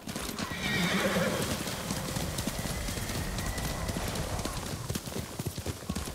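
A horse gallops, its hooves thudding quickly on soft ground.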